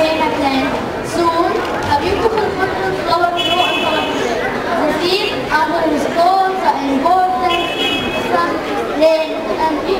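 A young girl speaks into a microphone, heard through a loudspeaker.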